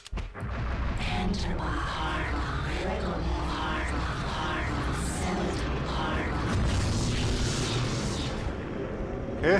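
Energy beams hum and warble.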